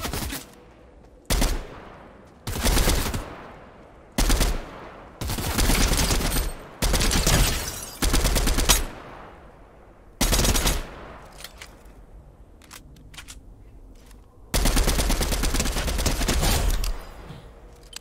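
A rifle fires loud rapid bursts of shots.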